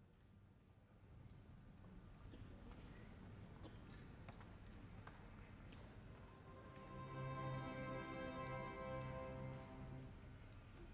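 An orchestra starts playing softly and then swells.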